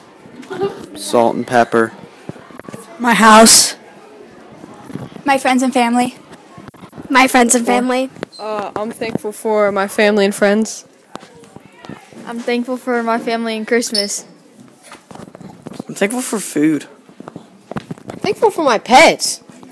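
Young boys speak in turn into a handheld microphone, close by.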